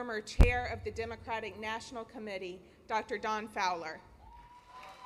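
A young woman speaks calmly into a microphone in a large echoing hall.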